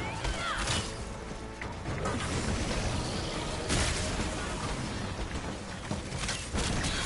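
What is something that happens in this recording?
Fiery explosions boom and roar.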